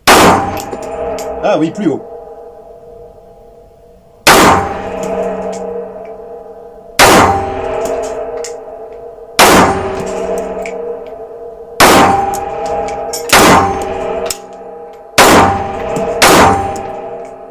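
A rifle fires single loud shots at a slow pace, each ringing out in an echoing room.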